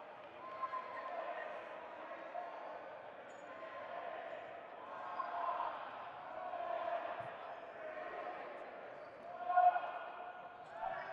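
Young men and women chatter and call out in a large echoing hall.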